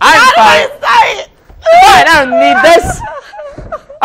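A young woman laughs and shrieks loudly close by.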